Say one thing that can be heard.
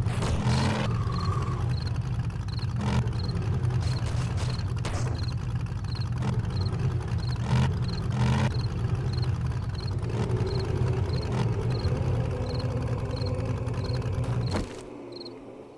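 A truck engine rumbles steadily as it drives over rough ground.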